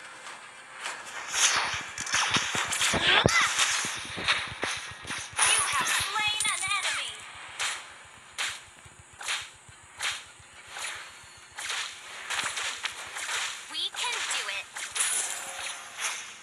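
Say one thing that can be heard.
Game sound effects of fighting clash and crackle in quick bursts.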